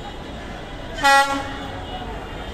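A diesel locomotive blasts its horn.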